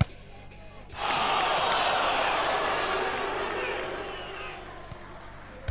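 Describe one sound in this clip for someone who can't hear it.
A crowd cheers loudly in a large arena, then fades.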